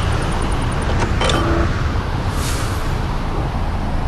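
A menu clicks open with a short chime.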